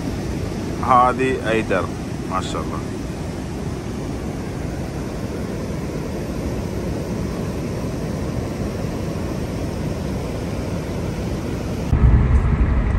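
River water rushes over stones and a weir in a steady roar.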